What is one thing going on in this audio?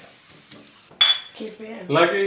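Glass bottles clink together in a toast.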